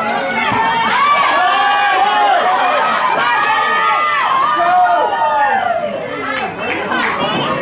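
A crowd of spectators nearby shouts and cheers loudly outdoors.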